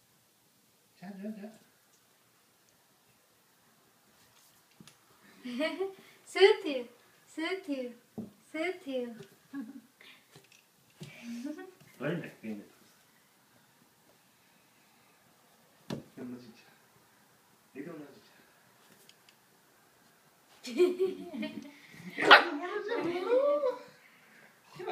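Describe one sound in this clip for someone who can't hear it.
A puppy whimpers and yelps close by.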